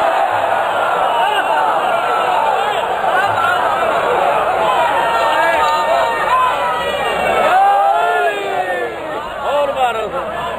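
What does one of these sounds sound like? A large crowd of men chants loudly together.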